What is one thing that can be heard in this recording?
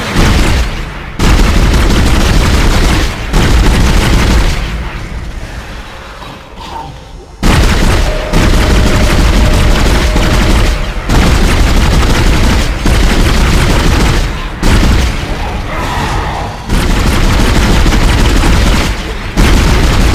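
A creature shrieks and snarls.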